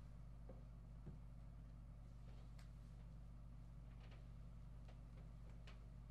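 Bedding rustles softly close by.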